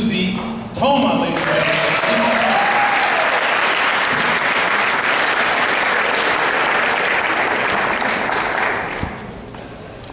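An audience applauds and cheers in a large echoing hall.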